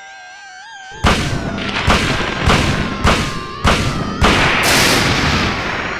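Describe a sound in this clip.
Shotgun blasts boom repeatedly in quick succession.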